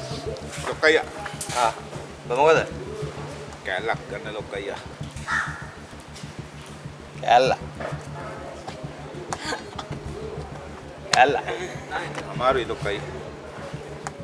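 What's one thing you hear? A middle-aged man speaks animatedly nearby.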